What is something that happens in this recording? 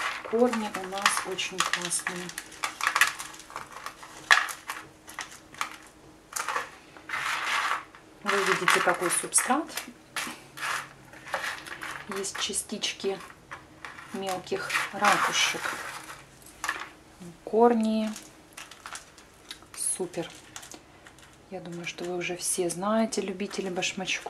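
Bark chips rustle and crunch as hands press them into a plastic pot.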